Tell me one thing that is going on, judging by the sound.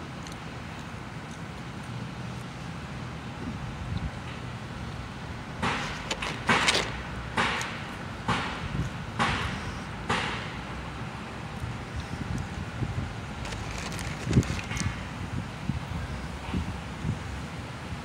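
A woman chews food close by.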